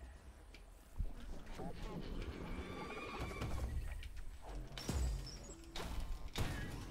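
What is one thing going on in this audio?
Game sound effects chime and burst as a character fights.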